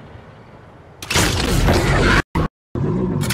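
A game weapon fires a humming energy beam.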